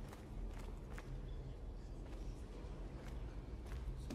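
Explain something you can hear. A crowd murmurs softly in the distance.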